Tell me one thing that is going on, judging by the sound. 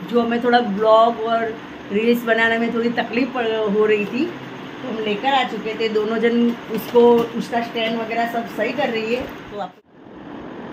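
A woman talks animatedly, close by.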